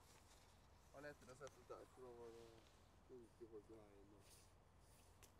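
A young man reads out calmly outdoors, close by.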